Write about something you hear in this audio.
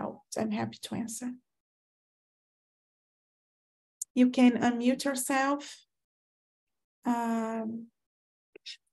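A woman talks calmly in bursts over an online call.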